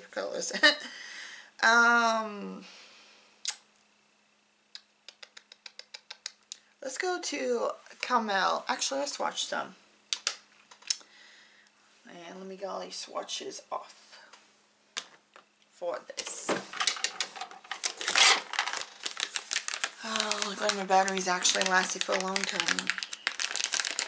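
A woman talks calmly and close to the microphone.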